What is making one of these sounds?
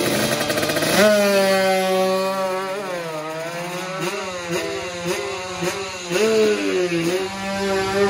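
A racing motorcycle roars away, its engine pitch rising and falling through the gears.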